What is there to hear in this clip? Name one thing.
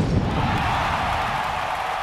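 Pyrotechnic flames whoosh.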